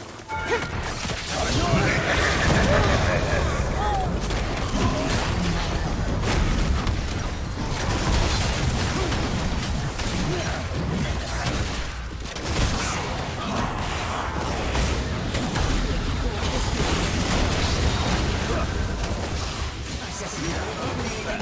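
Spell effects whoosh and crash in a fast game battle.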